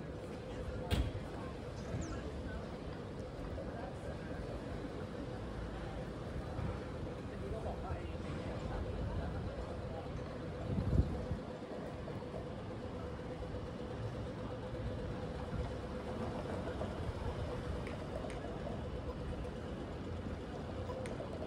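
A busy city street hums steadily with distant traffic.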